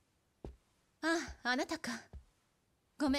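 A young woman speaks quietly with surprise.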